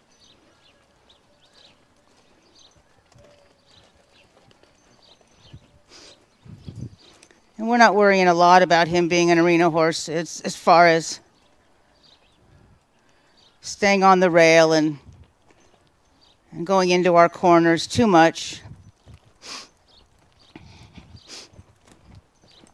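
A horse's hooves thud softly on sandy ground as it walks.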